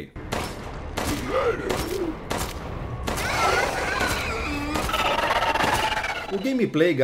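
A creature growls and shrieks.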